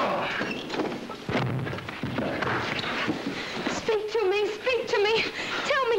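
A struggle thumps and scuffles close by.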